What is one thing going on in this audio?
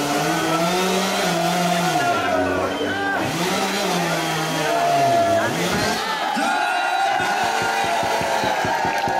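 Loud dance music with singing plays over loudspeakers.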